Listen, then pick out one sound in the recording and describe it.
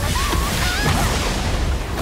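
Stone bursts apart with a heavy crash.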